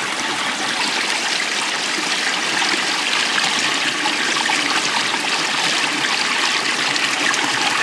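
Water pours over a small weir and splashes into a pool.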